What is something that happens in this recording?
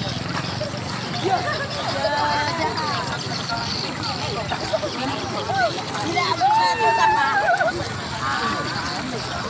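Teenage boys chatter as they walk past.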